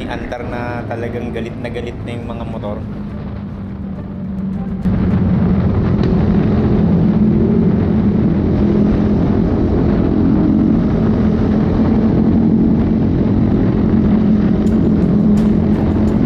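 A motorcycle engine hums steadily up close, growing louder as it speeds up.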